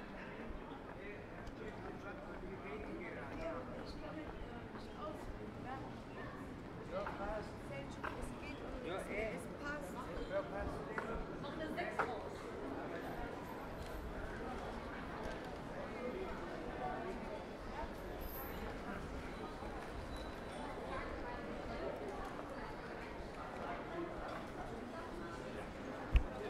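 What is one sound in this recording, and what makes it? A crowd of people chatters in a busy street outdoors.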